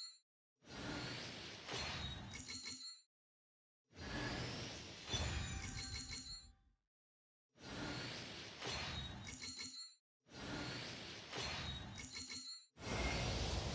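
A shimmering whoosh and chime ring out with each reveal, again and again.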